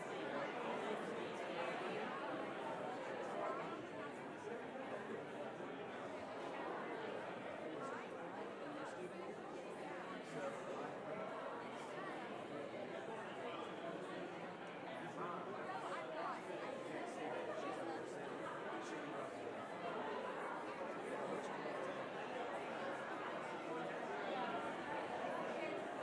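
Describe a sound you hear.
A crowd of men and women chat and murmur all around in a large echoing hall.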